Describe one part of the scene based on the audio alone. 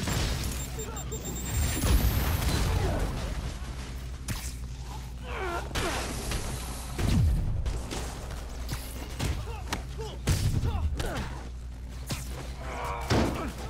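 Punches and kicks thud in a fast fight.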